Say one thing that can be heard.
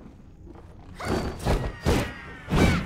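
Heavy weapons clash and slash in a fierce fight.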